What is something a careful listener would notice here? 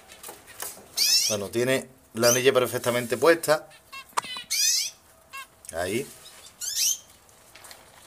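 A small bird chirps sharply up close.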